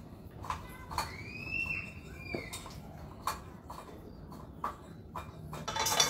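A spatula scrapes batter from a plastic bowl into a pot.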